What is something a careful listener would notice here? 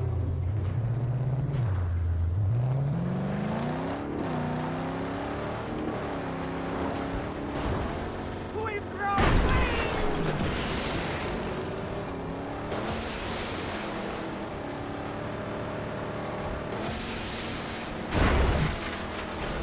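Tyres skid and crunch over loose gravel.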